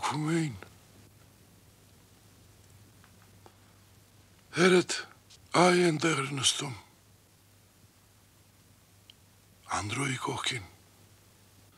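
An elderly man speaks sternly in short bursts, close by.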